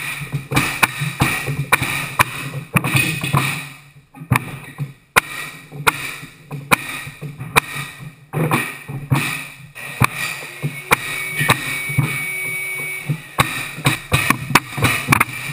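A pneumatic floor nailer bangs sharply again and again as a mallet drives it into a wooden floor.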